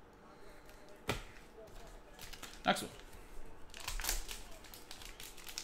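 A foil wrapper crinkles in hands.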